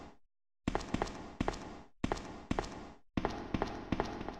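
Footsteps echo on a hard floor in a large echoing room.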